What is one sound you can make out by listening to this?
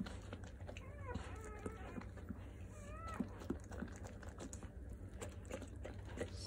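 A dog licks wetly and smacks its lips.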